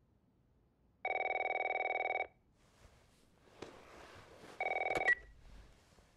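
A phone rings loudly nearby in short electronic bursts.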